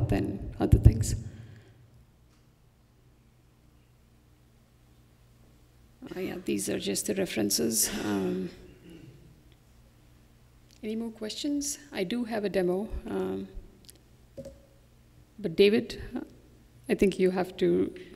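A young woman speaks calmly into a microphone, with pauses.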